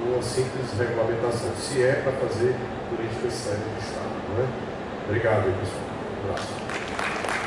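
A man speaks with animation into a microphone over a loudspeaker.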